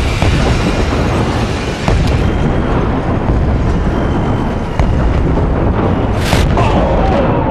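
Heavy gunfire and loud rumbling blasts sound close by.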